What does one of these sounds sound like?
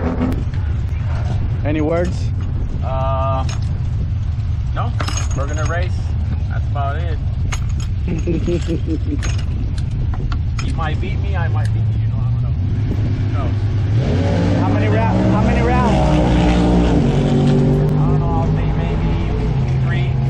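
Metal tools click against a car wheel.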